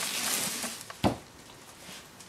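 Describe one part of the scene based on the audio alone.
A heavy plastic object thumps down on a wooden table.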